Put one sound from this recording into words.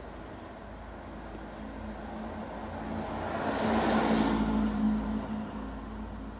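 A car drives past close by, growing louder and then fading.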